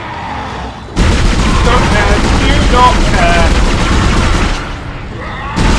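A weapon fires in rapid bursts.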